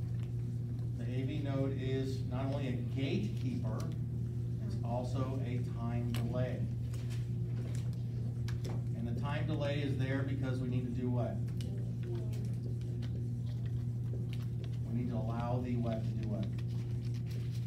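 A man speaks calmly, lecturing nearby.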